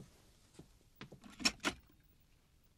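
A door latch clicks.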